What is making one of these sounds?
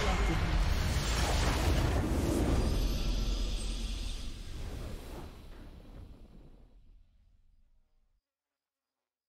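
A triumphant fanfare swells and slowly fades away.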